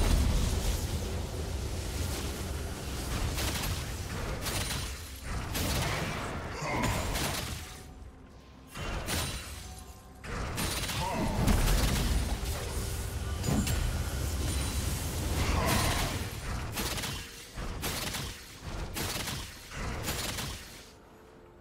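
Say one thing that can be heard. Game characters strike with sharp hits.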